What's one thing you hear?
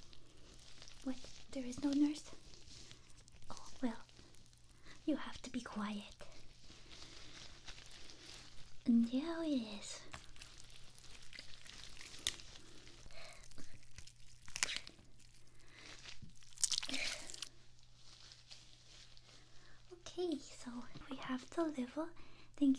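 A young woman speaks softly and close up, muffled through a mask.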